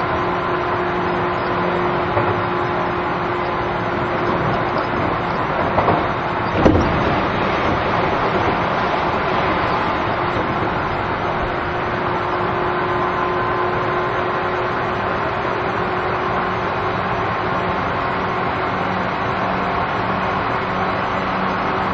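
A standing train hums steadily.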